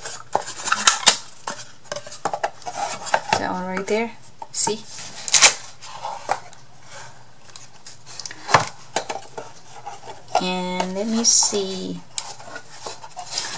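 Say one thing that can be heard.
A cardboard box knocks and scrapes against a table.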